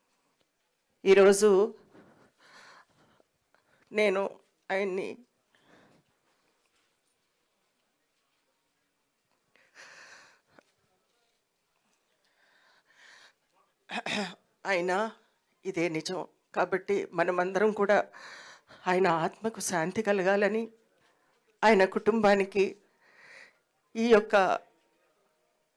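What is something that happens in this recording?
A middle-aged woman speaks emotionally into a microphone, pausing often.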